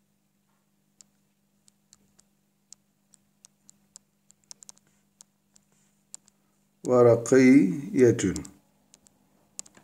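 A stylus taps and scratches lightly on a tablet.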